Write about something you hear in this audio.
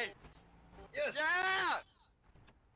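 Car tyres screech on pavement.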